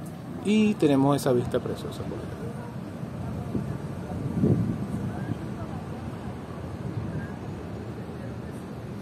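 Distant city traffic hums steadily far below.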